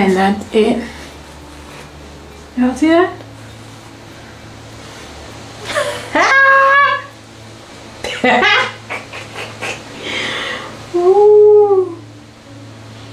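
A young woman talks close by with animation, her voice rising and falling.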